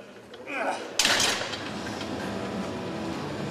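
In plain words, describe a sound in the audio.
A barbell clanks as it is racked.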